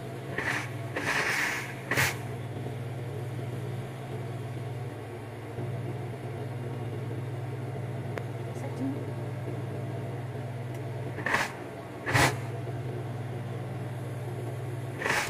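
Fabric rustles as hands handle it.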